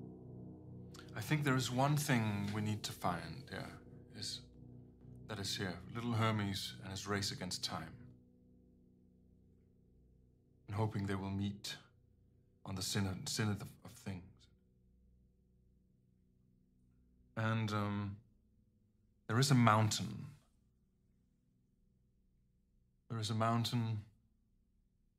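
A man speaks calmly and close to a microphone, in short phrases.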